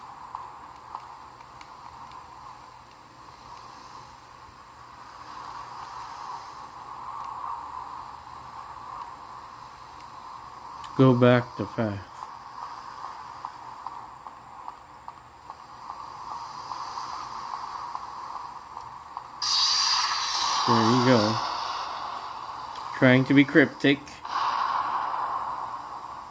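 Game music plays tinnily through a small handheld speaker.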